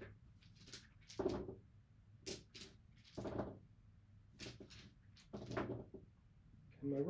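Chips click and clack together.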